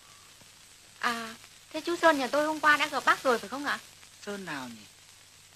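A young woman speaks with feeling, close by.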